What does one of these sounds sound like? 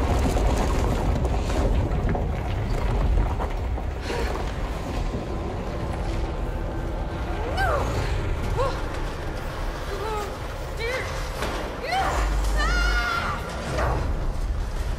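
Heavy concrete blocks crack and crumble as walls break apart.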